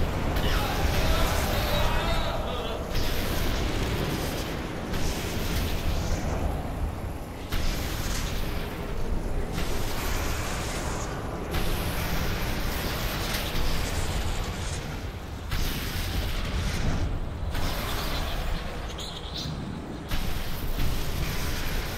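An electric beam crackles and hums steadily.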